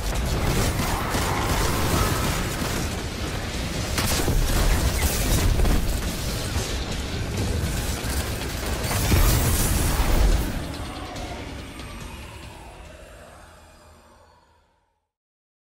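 Gunfire and energy blasts crackle and boom loudly, then fade away.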